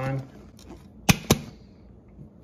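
A metal lid clicks onto a container.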